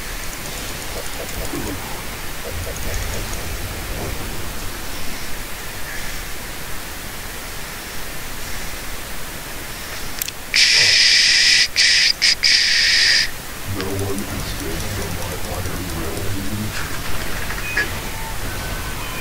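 A man talks casually into a nearby microphone.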